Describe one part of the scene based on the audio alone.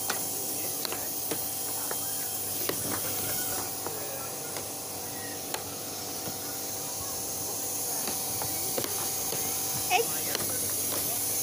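A plastic puck clacks against mallets and the sides of a table.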